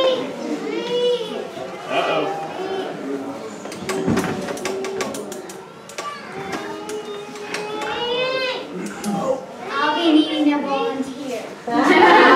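A young boy talks, heard through a microphone in a room that echoes a little.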